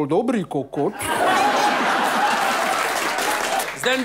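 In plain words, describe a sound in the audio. People applaud and cheer.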